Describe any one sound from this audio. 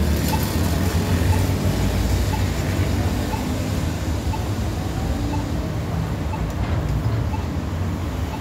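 Cars drive past close by on a busy street.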